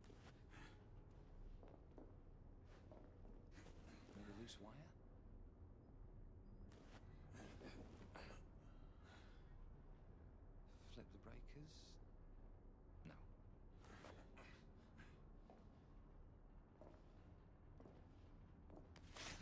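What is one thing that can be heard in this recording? Footsteps creak and clank softly on a metal floor.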